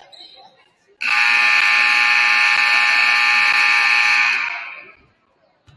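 A loud game buzzer blares steadily in a large echoing hall.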